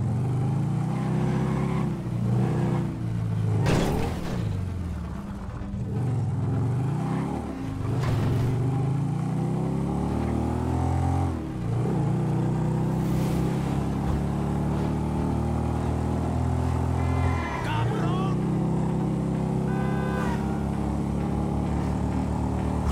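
A motorcycle engine rumbles and revs up and down as the bike rides along.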